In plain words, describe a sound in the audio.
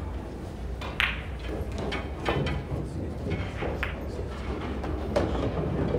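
Pool balls click against each other and roll across the table.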